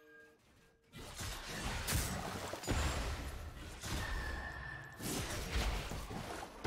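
Magic spells whoosh and crackle in a video game fight.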